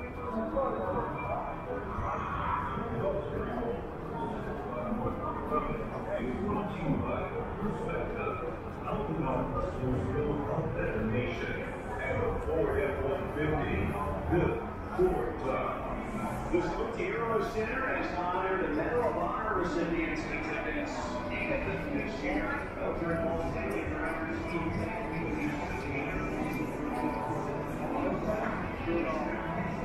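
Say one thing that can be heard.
A crowd of men and women chatter in a large, busy hall.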